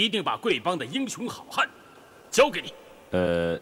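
A man speaks forcefully and loudly, close by.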